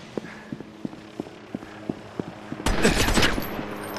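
Footsteps climb metal stairs.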